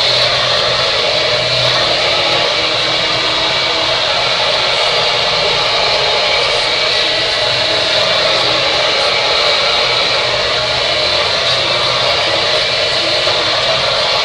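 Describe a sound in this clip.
A hair dryer blows with a loud, steady roar close by.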